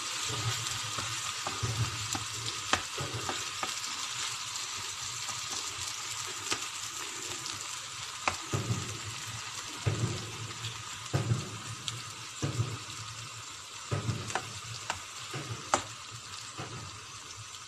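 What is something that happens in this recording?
A wooden spatula scrapes and knocks against a nonstick frying pan.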